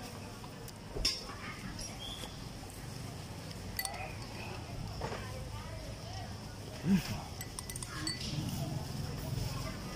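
A man slurps from a glass close by.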